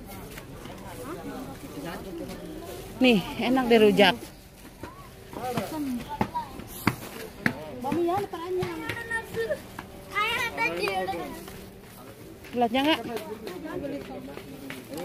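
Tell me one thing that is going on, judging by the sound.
Women talk loudly nearby.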